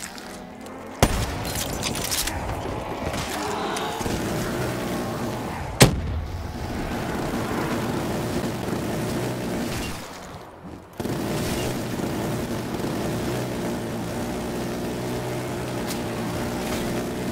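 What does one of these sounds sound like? A heavy machine gun fires in long, rapid bursts.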